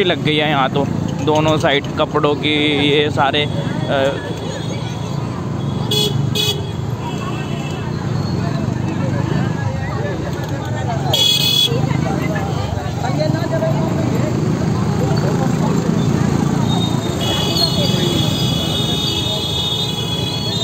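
Motorbike engines hum past.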